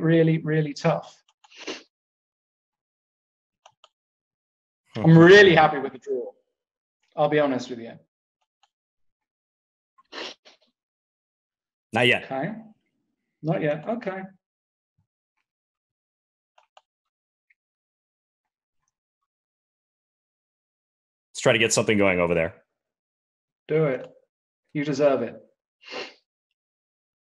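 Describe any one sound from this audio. A man speaks calmly in short bursts through a microphone.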